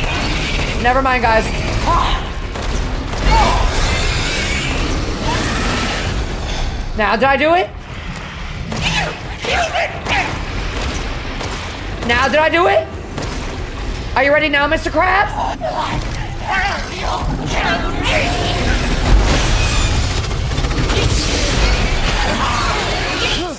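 A monster growls and shrieks.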